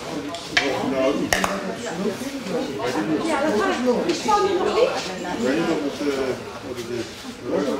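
Water sloshes as hands knead something in a metal basin.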